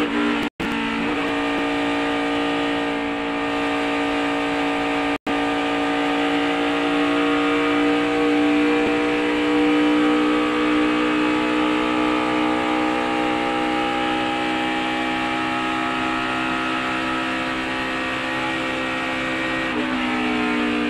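A race car engine roars loudly at high speed, close up.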